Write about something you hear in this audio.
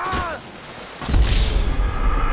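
A body slams into the ground with a heavy thud.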